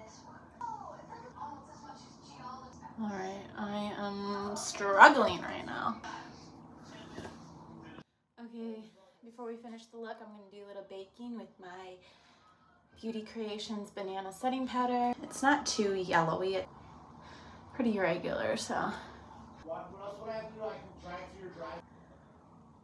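A young woman talks up close, calmly and with animation.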